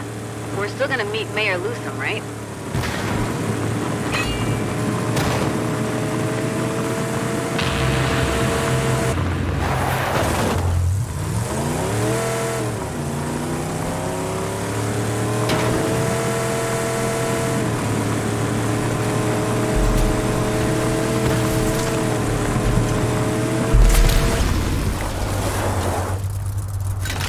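A truck engine roars steadily, its pitch rising and falling as it changes gear.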